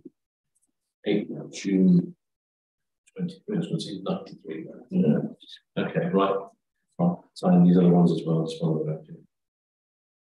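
An older man speaks calmly, heard through an online call.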